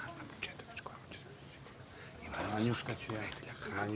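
A mattress rustles and thumps as it is lifted.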